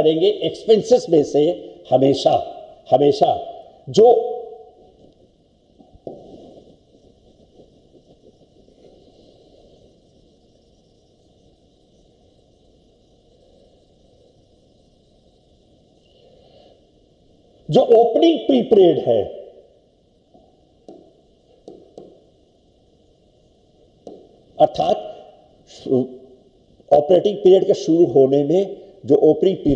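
An elderly man speaks calmly into a microphone, in bursts with long pauses.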